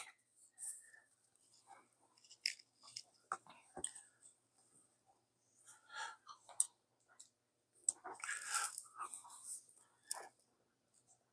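Plastic clicks and rustles as a charger and cable are handled.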